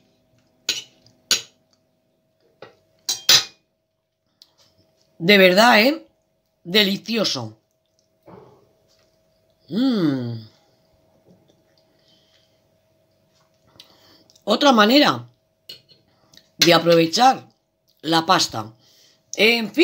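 A fork and knife scrape and clink against a plate.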